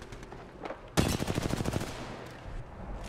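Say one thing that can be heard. A rifle fires a single loud, sharp shot that rings out briefly.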